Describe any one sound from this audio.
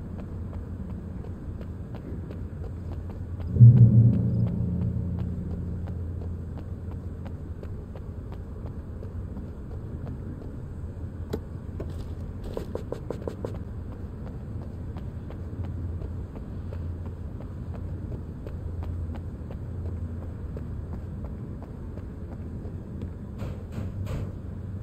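Footsteps run quickly over wet ground.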